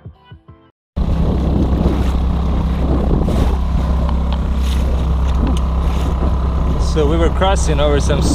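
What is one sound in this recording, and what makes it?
Water splashes and rushes against a boat's hull.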